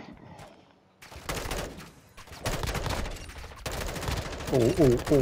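A rifle fires in rapid bursts, with loud cracks.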